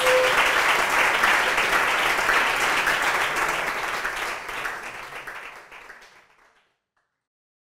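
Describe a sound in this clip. An audience applauds loudly in a room, then the clapping fades away.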